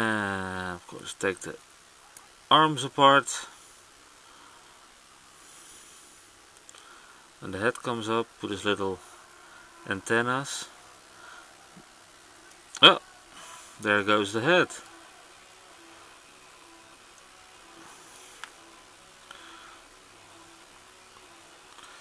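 Small plastic parts click softly as a toy is twisted and folded by hand.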